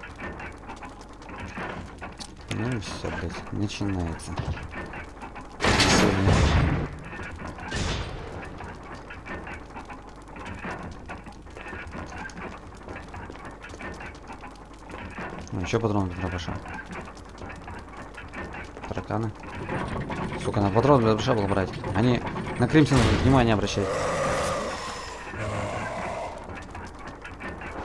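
A young man talks through a headset microphone.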